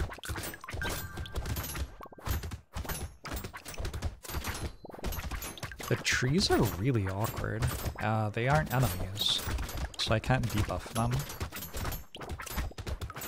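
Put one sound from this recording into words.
Rapid electronic hit and slash effects from a video game clatter without pause.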